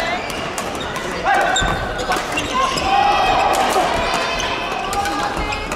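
Shoes squeak sharply on a hall floor.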